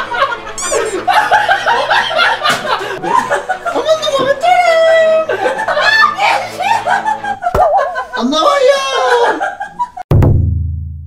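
Young men laugh loudly and shout with excitement close by.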